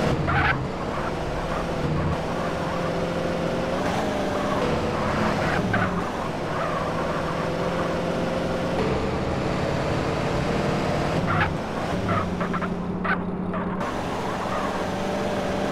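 Car tyres screech on asphalt.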